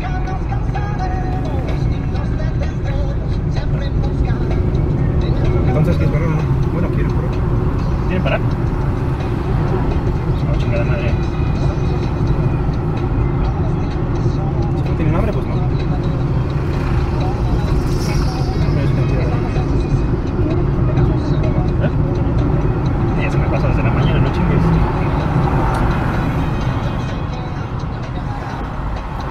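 A car drives along a street on asphalt, its road rumble heard from inside.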